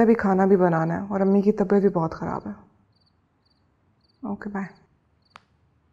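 A young woman speaks quietly into a phone, close by.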